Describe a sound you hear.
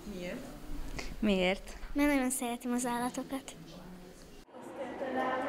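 A young girl speaks close to a microphone.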